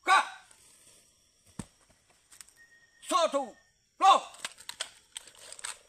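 Rifles clack as they are handled in drill.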